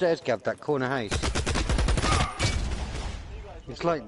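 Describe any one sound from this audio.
A rifle fires a rapid burst of shots.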